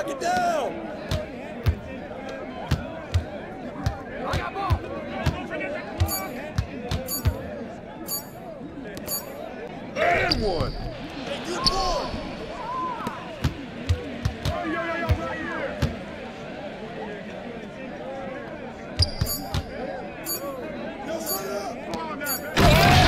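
A basketball bounces repeatedly on a hardwood court.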